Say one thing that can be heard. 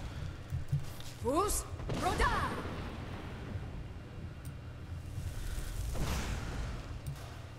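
Magic flames crackle and roar steadily.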